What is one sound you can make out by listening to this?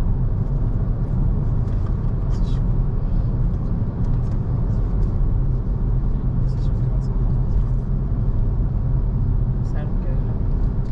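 A car drives steadily along a road with a low rumble of engine and tyres.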